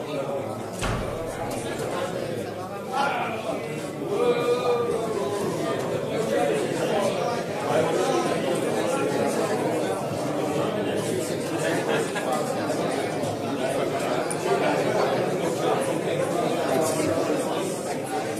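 Several adults chatter in a busy, crowded room.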